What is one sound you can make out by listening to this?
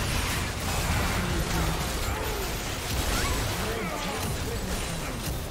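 Magic blasts and clashing weapons crackle and burst in a busy fight.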